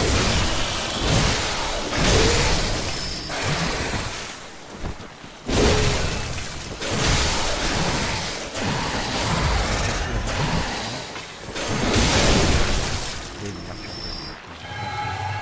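Heavy blades slash and strike with loud crashing impacts.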